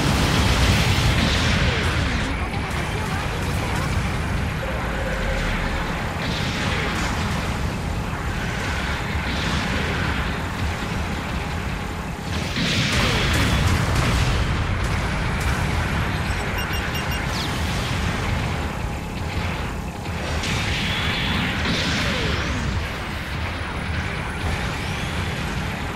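A giant robot's thrusters roar steadily as it boosts along.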